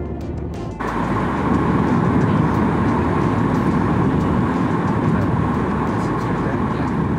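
A jet engine roars steadily inside an airplane cabin.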